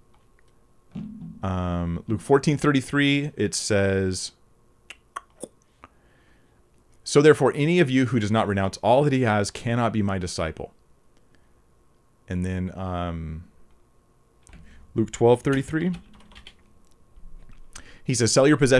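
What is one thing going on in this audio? A man speaks calmly and clearly into a close microphone, in short bursts with pauses.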